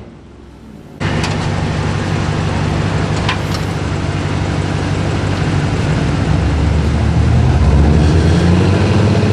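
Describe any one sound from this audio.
A car engine idles with a low rumble outdoors.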